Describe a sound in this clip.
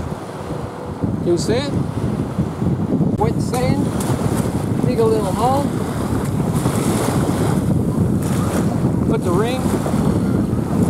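Small waves wash onto the shore.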